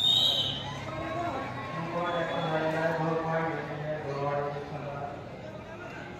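A man calls out loudly over a crowd.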